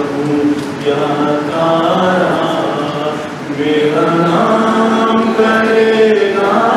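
An elderly man speaks steadily into a microphone, heard through a loudspeaker.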